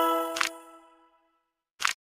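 A treasure chest creaks open with a bright chime.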